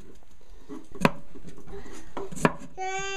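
A knife knocks against a cutting board.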